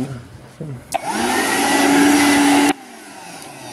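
A handheld vacuum cleaner motor whirs loudly, then cuts off.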